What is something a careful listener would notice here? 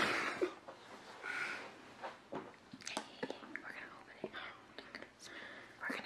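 A second young woman laughs and talks close by.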